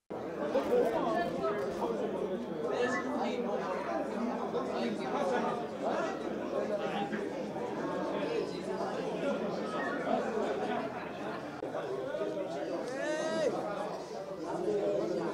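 Young men chatter and talk over one another nearby.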